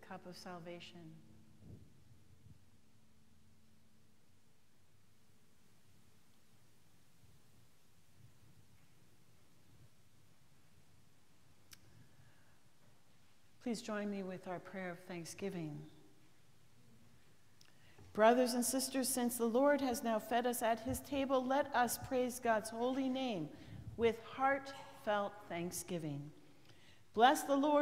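A middle-aged woman speaks calmly through a microphone in a large echoing room.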